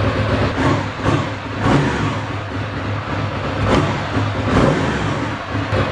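A motorcycle engine revs briefly a few times.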